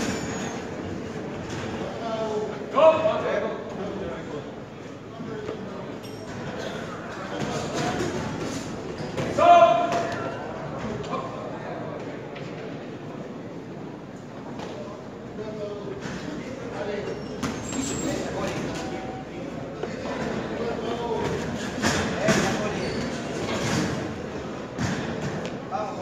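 A crowd murmurs and shouts throughout a large echoing hall.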